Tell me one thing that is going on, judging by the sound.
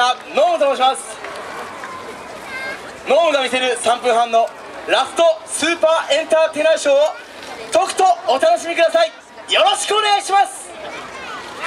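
A group of young dancers chants loudly in unison outdoors.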